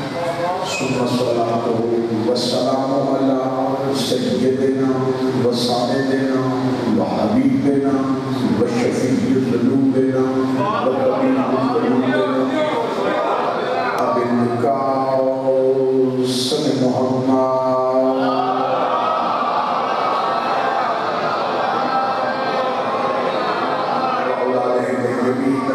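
A young man recites in a sustained, melodic chant through a microphone and loudspeakers.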